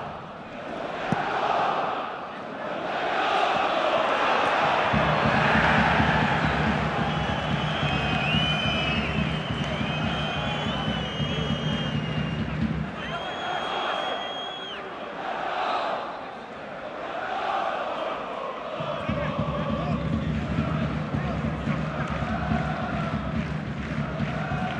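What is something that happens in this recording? A large stadium crowd cheers and chants steadily.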